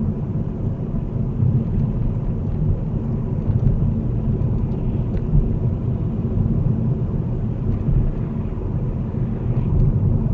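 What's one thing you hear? A car engine hums steadily with a low road rumble from inside the car.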